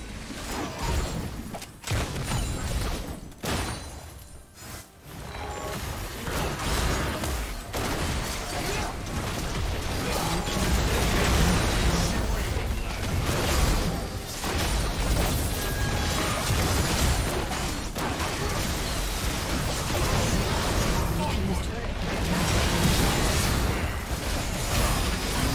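Game spells blast and explode in a busy fight.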